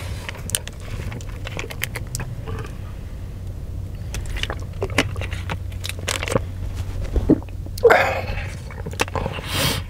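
A plastic water bottle crackles in a hand.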